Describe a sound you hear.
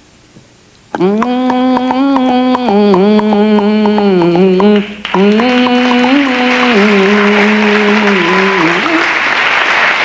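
A man sings long, held notes into a microphone.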